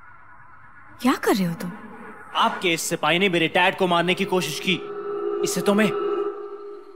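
A young man speaks angrily and loudly, close by.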